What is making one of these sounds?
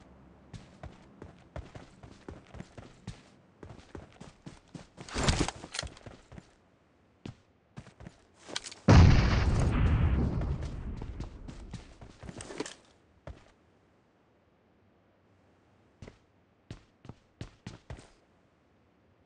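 Footsteps crunch quickly on gravel and grass.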